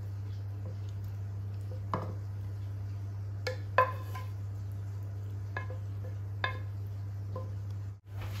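A spatula scrapes food from a pan into a dish.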